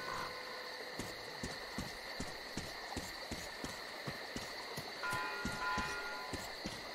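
Footsteps tread steadily over rough ground.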